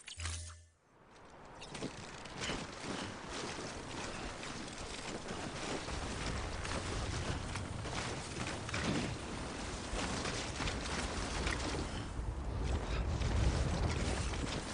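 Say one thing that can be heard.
Heavy footsteps crunch and slide through deep snow.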